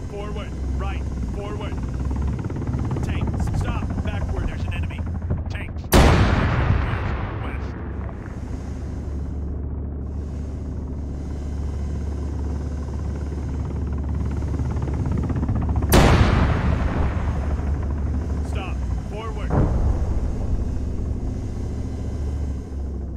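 Helicopter rotors thud steadily overhead.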